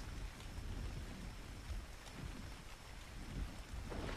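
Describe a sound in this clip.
Water laps gently.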